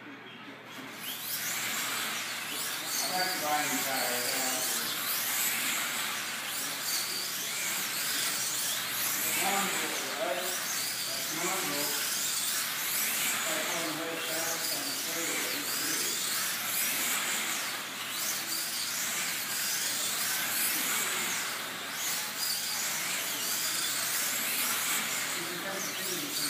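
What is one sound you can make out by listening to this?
Slot cars whine and buzz around a track, their motors rising and falling in pitch.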